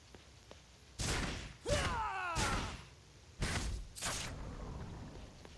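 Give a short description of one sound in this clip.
Heavy blade strikes land with loud crashing impacts.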